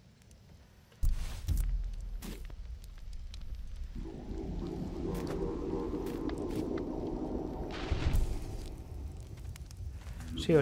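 A torch flame crackles and roars softly.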